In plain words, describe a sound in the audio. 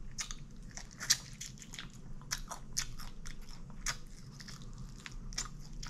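A woman chews and smacks her lips loudly, close to a microphone.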